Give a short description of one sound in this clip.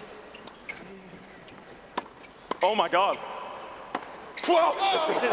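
Tennis balls are struck sharply with rackets.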